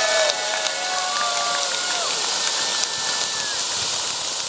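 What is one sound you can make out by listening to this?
Sparkler fountains hiss and crackle steadily.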